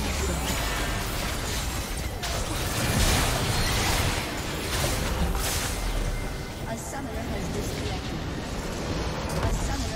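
Game spell effects crackle and boom in a dense battle.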